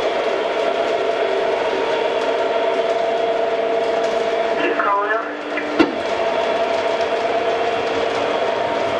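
A model train hums and clatters steadily along its track.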